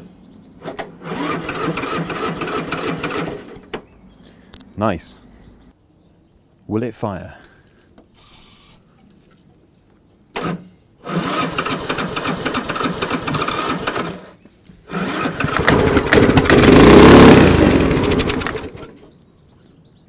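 A small engine turns over and runs roughly in short bursts, then stops.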